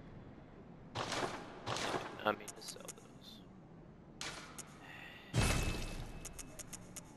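Louder menu chimes sound as selections are confirmed.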